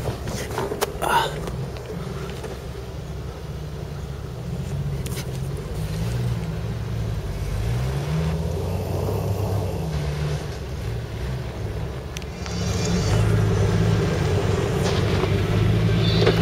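An off-road vehicle's engine rumbles and revs as it crawls over rough ground.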